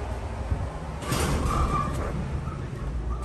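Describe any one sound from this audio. Elevator doors slide open with a rattle.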